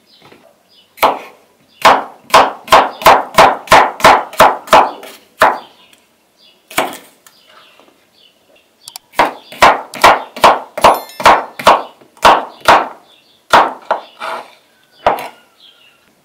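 A knife chops through cucumber onto a wooden cutting board.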